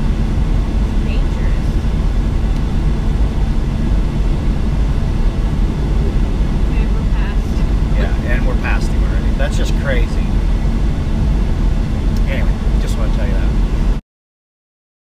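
A man talks from the driver's seat.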